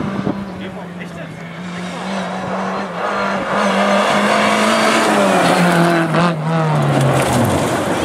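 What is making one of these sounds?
Gravel crunches and sprays under speeding tyres.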